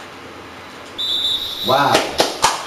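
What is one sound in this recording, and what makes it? A referee's whistle blows once, sharp and short.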